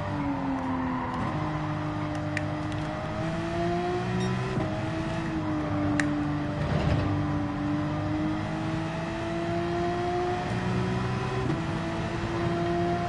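A racing car engine roars steadily, its pitch climbing through each gear and dropping at every gear change.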